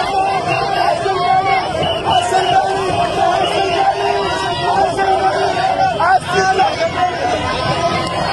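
A crowd of young men and women shouts and cheers close by.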